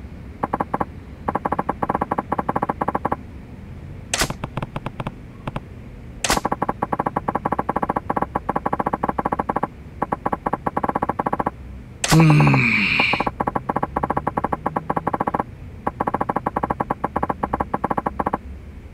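Rapid electronic blips tick in quick bursts.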